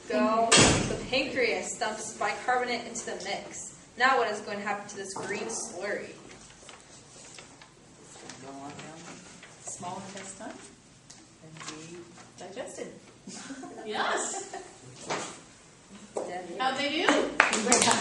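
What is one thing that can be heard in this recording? A young woman reads out lines from paper.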